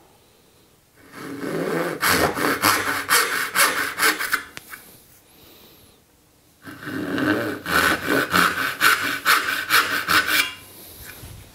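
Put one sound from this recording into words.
A hand saw rasps back and forth through wood in quick strokes.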